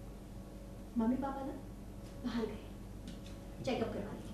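A young woman talks with agitation close by.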